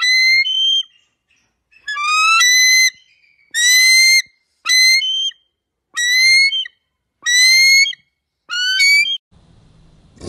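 A bald eagle gives a series of high, piping calls.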